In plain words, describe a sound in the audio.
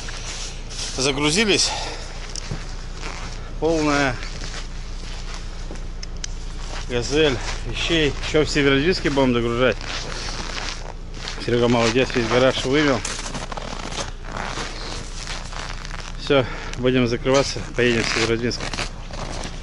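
A middle-aged man talks calmly close to the microphone.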